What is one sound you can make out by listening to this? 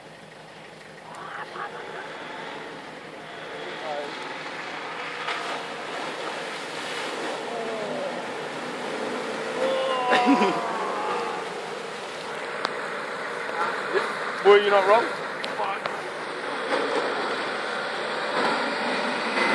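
A vehicle engine rumbles and revs as it drives through mud.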